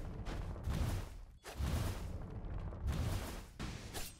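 Cartoon explosions boom loudly.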